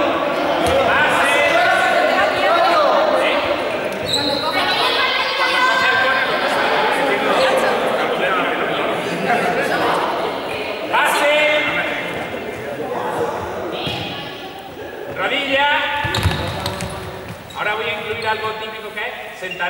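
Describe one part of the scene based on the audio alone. Young people chatter and shout in a large echoing hall.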